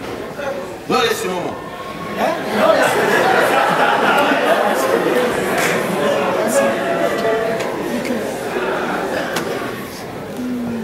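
A younger man answers in an echoing hall.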